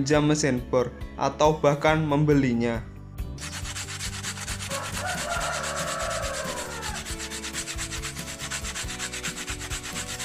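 Sandpaper scrapes against a thin stick.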